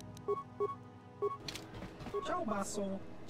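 Short electronic menu beeps sound in quick succession.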